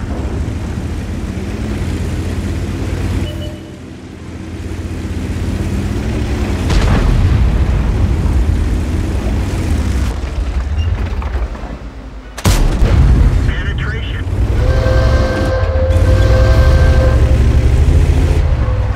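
A heavy tank engine rumbles and clanks steadily.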